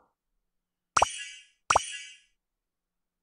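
Two bright game chimes ring in quick succession.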